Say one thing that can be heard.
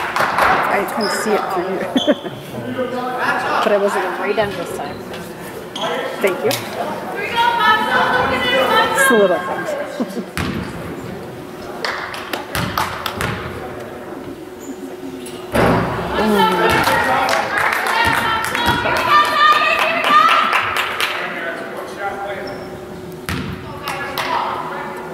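Adult spectators chat close by in a large echoing hall.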